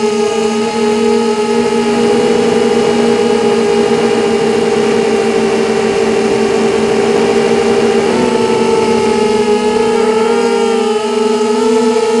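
The motors of a small drone whine steadily at high pitch as it flies low, with the pitch shifting now and then.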